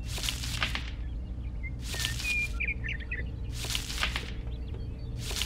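A stalk scrapes softly as it is pushed into dry sand.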